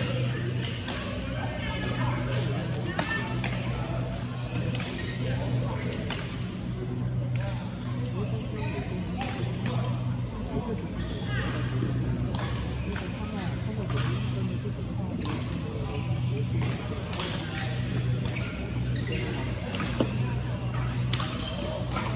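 Shuttlecocks are struck sharply by rackets throughout a large echoing hall.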